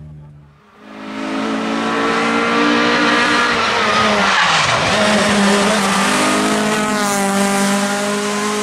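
A car engine roars as the car speeds along a road.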